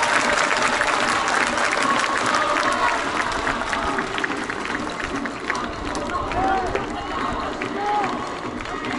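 A stadium crowd cheers and chants in a wide open space.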